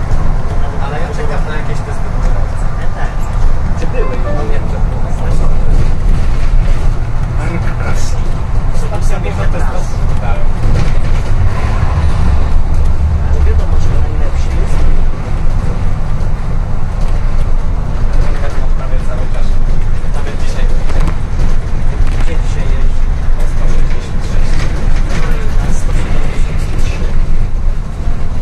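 The bus body rattles and clatters over the road.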